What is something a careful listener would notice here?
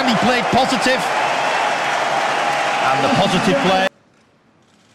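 A few men clap their hands.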